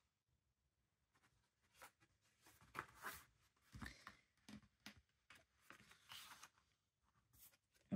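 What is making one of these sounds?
Stiff paper pages rustle and flip as they are turned.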